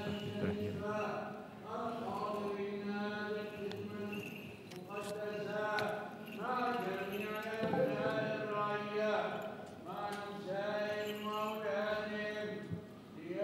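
Men chant together in a slow, echoing liturgical melody.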